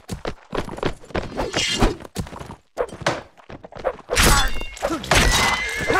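A horse's hooves thud on dirt.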